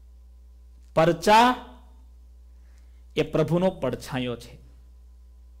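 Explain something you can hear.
A middle-aged man speaks calmly and close to a microphone, in short phrases.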